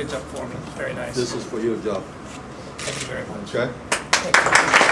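An older man speaks into a microphone, heard through a loudspeaker.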